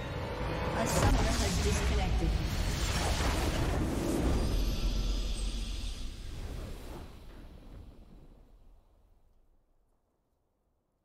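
A bright, triumphant fanfare swells with a burst of magical shimmer, then slowly fades away.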